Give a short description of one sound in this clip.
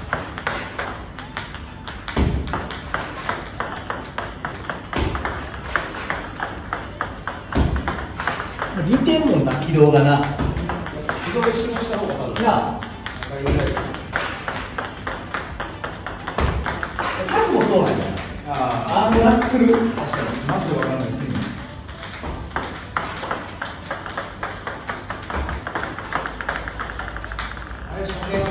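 Ping-pong balls bounce and click rapidly on a table.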